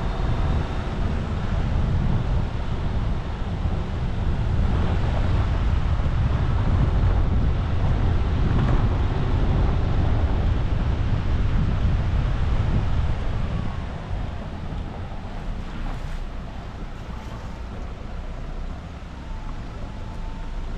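Tyres crunch over a dirt and gravel track.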